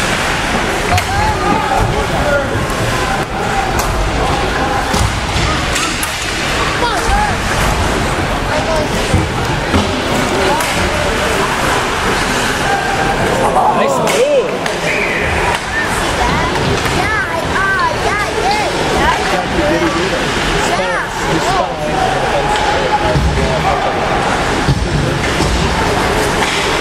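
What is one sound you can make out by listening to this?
A crowd of spectators chatters steadily in a large echoing arena.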